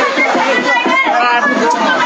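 A woman shouts through a megaphone.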